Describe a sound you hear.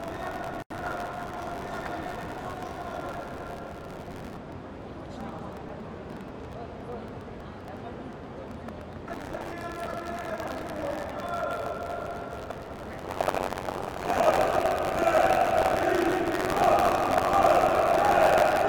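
A crowd of fans chants loudly in a large echoing hall.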